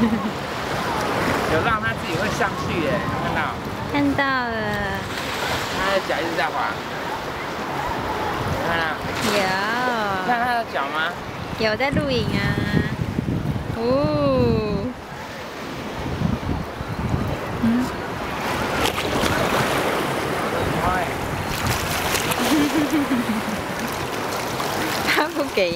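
Small waves lap and slosh steadily outdoors.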